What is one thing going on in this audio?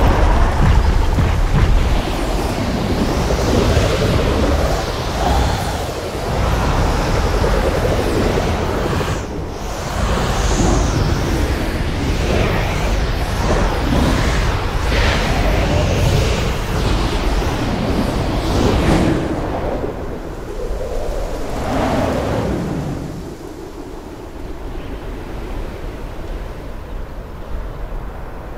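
Air rushes and roars past during a fast flight.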